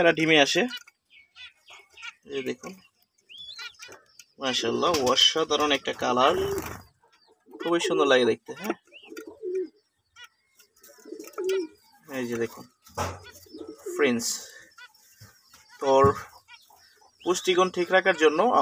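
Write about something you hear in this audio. Small finches chirp in short, high peeps.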